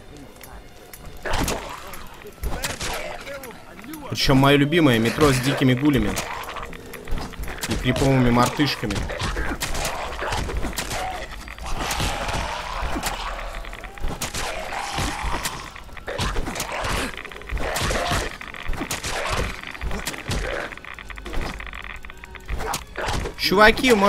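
Ghouls snarl and screech as they attack.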